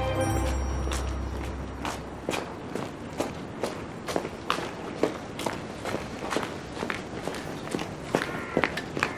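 Footsteps tap on pavement at a steady walking pace.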